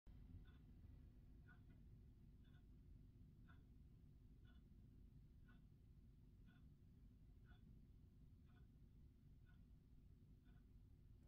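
A gramophone record ticks softly once on every turn.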